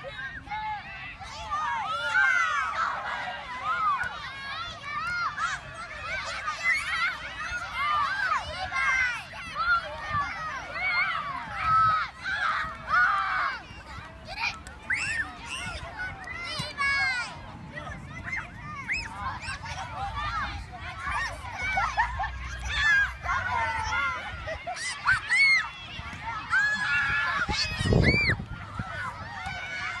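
A crowd of children shout and chatter excitedly outdoors.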